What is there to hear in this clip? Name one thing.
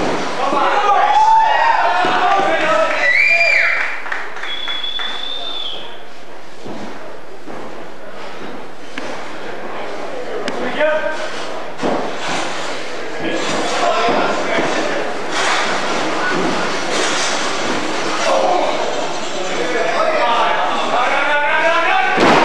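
A wrestler thuds onto the mat.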